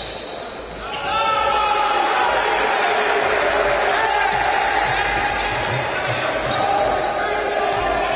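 A crowd in an echoing hall cheers loudly.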